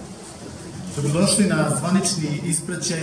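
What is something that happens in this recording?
A man speaks into a microphone, heard through loudspeakers.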